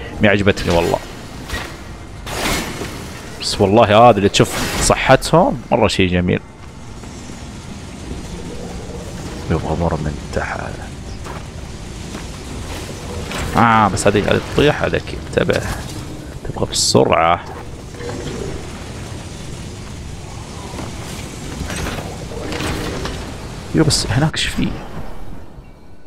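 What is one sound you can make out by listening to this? Sword slashes and magic blasts ring out sharply.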